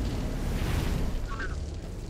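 A burst of flame roars.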